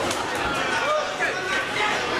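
Boxing gloves thud against a fighter's body.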